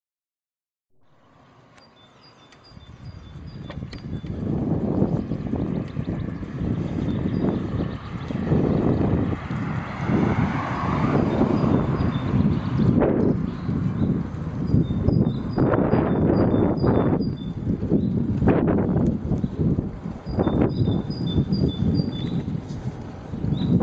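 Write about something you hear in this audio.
Wind rumbles loudly and gusts against a moving bicycle.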